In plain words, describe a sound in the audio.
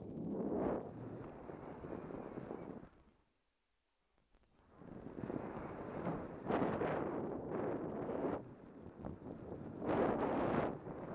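Bike tyres crunch and rattle over a rough dirt trail.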